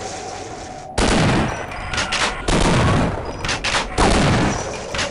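A shotgun fires loud blasts in quick succession.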